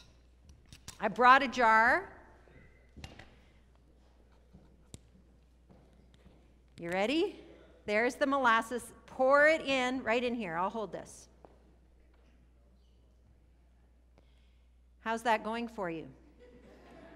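A woman speaks with animation in a large echoing hall, in short bursts with pauses.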